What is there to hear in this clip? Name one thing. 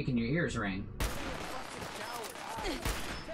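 A rifle fires with a loud bang.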